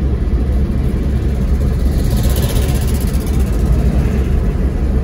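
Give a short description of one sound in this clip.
Wind rumbles loudly against a moving car.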